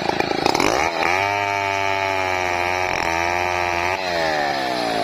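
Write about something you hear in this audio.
A chainsaw cuts through wood.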